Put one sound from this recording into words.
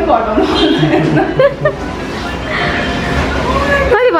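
A young woman laughs and talks cheerfully close by.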